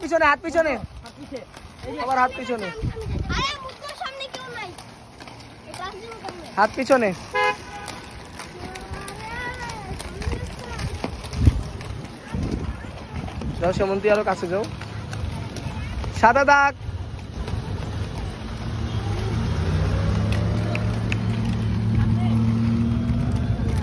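Inline skate wheels roll and grind on rough pavement.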